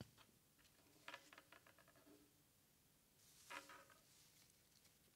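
An elderly woman speaks quietly and hesitantly, close to a microphone.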